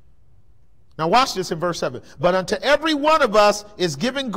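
A man speaks steadily through a microphone in a large room.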